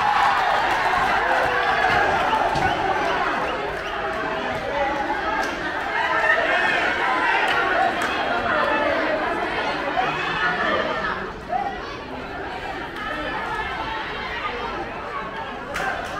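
A crowd of spectators shouts and chatters outdoors.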